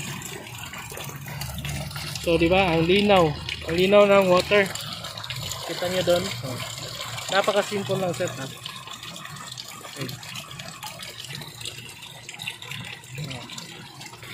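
Water splashes and gurgles steadily into a pond.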